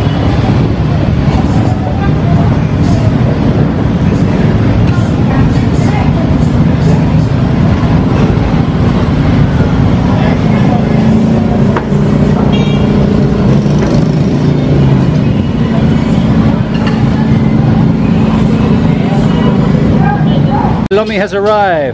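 Motorbike engines idle and rumble nearby in a busy street.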